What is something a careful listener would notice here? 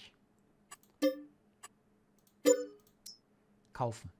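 Short electronic menu chimes ring out.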